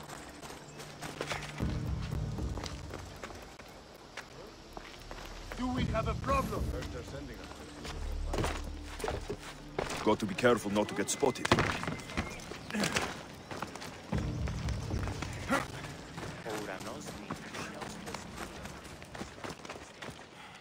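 Footsteps run over dirt and stone.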